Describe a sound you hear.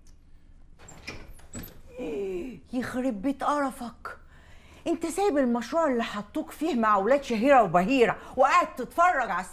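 A woman speaks from a doorway.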